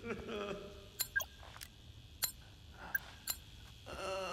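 An electronic device beeps sharply several times.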